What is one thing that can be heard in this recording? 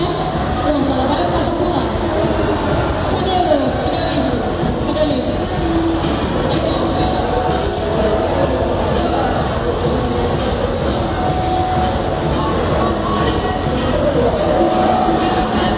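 A woman speaks with animation through a loudspeaker in a large echoing hall.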